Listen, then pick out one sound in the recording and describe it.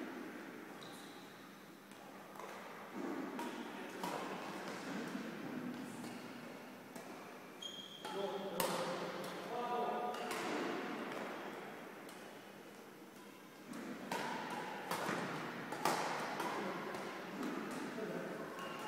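The sounds echo around a large, hollow hall.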